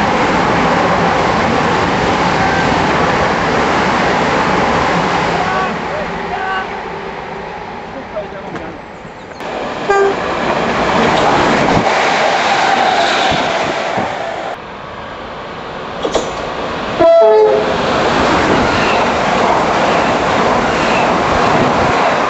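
A train rushes past on the tracks with a loud roar.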